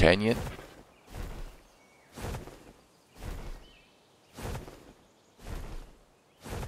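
Large wings beat with regular whooshing flaps.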